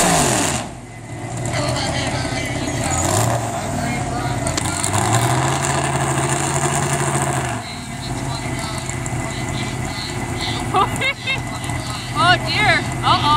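A pulling tractor's engine roars and revs loudly outdoors.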